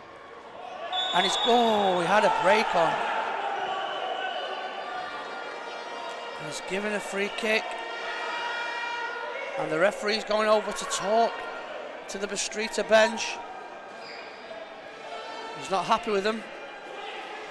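Men shout on a pitch in a large echoing hall.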